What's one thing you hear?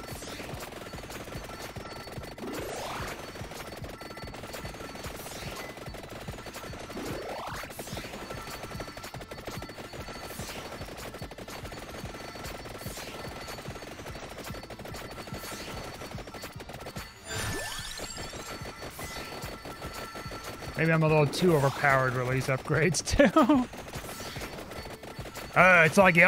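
Rapid game sound effects of attacks and hits chime and crackle constantly.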